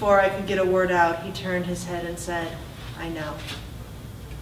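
A woman reads aloud calmly into a microphone.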